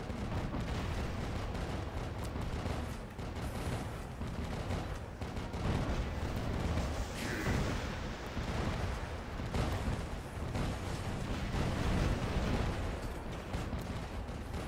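Heavy guns fire in rapid bursts.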